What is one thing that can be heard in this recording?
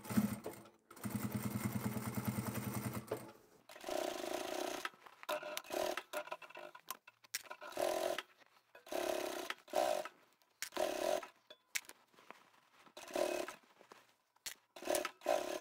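A sewing machine runs in short, steady bursts.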